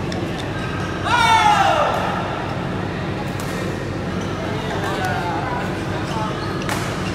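Shoes squeak loudly on the court floor.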